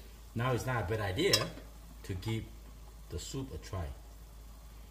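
A spoon scrapes and clinks against a metal pan.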